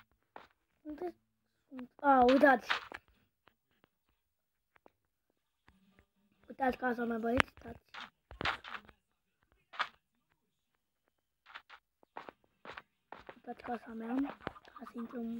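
A boy talks with animation, close to a microphone.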